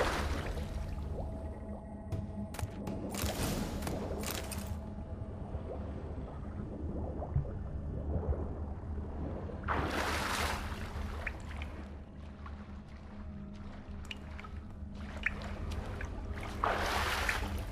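A low, muffled underwater rumble drones steadily.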